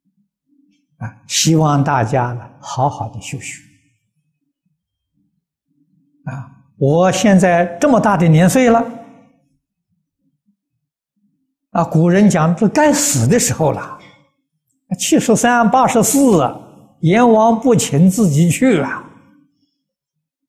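An elderly man speaks calmly and warmly close to a microphone, in short phrases with pauses.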